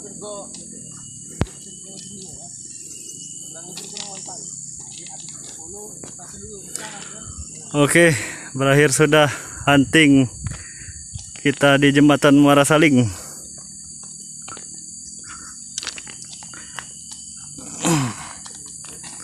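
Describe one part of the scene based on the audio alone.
Footsteps crunch on gravel and wooden sleepers.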